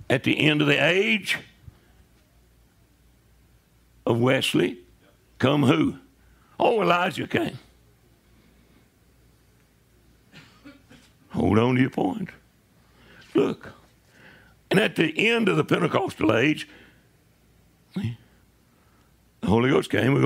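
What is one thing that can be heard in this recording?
An elderly man preaches with emphasis into a microphone, in bursts with pauses.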